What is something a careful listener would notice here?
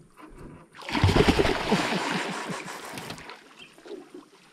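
A fish thrashes and splashes loudly at the water's surface.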